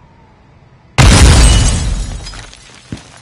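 A gunshot booms loudly and echoes briefly.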